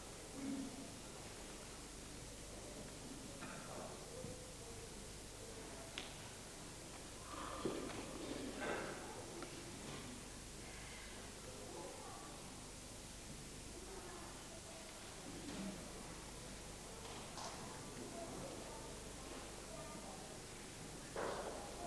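An elderly man speaks quietly in an echoing church.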